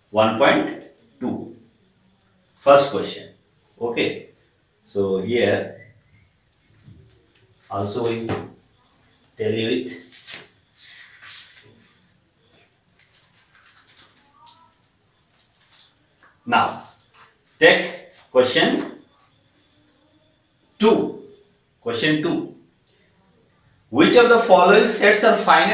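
A man speaks calmly and clearly, in short bursts with pauses.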